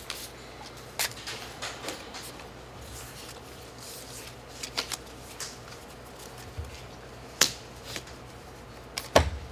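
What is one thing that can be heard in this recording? Cards slap softly onto a table.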